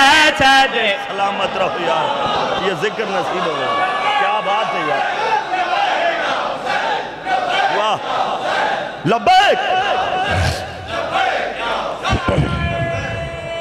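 A crowd of men chants loudly together in an echoing hall.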